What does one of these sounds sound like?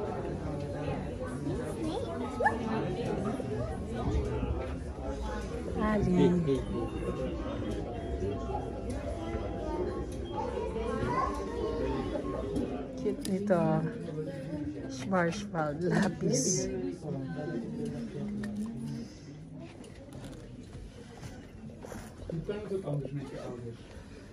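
Men and women chatter nearby in a busy indoor space.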